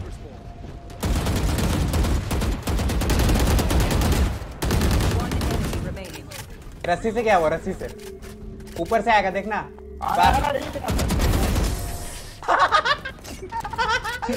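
An automatic rifle fires rapid bursts of gunshots in a video game.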